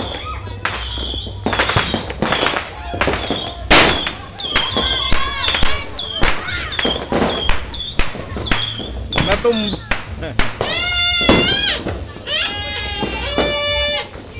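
Fireworks bang and crackle loudly, one after another.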